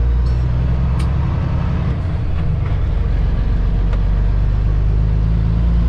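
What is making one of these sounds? A truck's diesel engine rumbles loudly and steadily from inside the cab.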